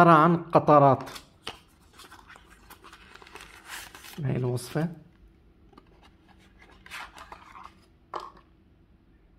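A small cardboard box rustles as it is opened.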